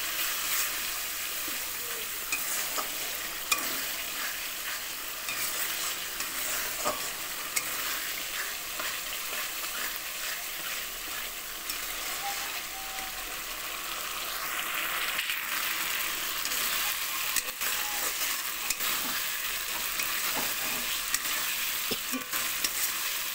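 Food sizzles and bubbles in a hot pan.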